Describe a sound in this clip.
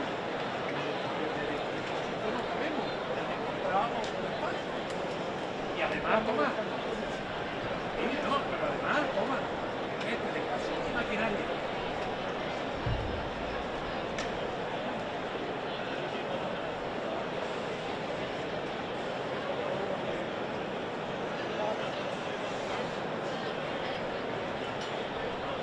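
A large crowd murmurs steadily outdoors.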